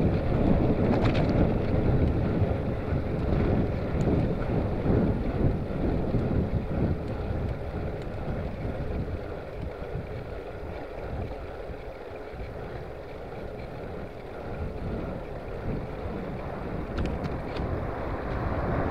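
Wind rushes and buffets steadily, louder at first.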